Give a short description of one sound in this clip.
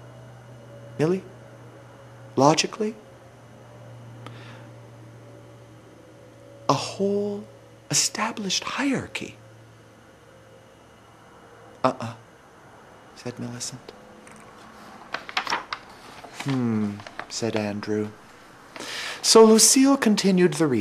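A middle-aged man speaks close to a microphone in short, animated bursts with pauses.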